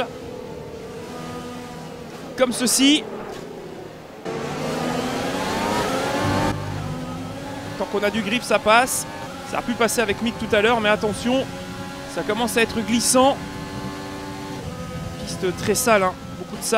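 A racing car engine screams loudly, revving up and dropping sharply with each quick gear change.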